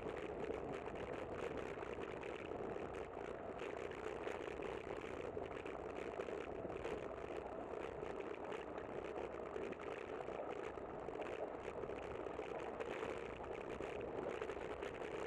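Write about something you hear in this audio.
Bicycle tyres hum along smooth pavement.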